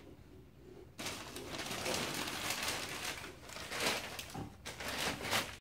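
Paper rustles loudly as a toddler pulls at wrapping paper and tissue.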